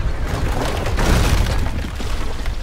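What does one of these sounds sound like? A heavy chain rattles and clanks on a wooden deck.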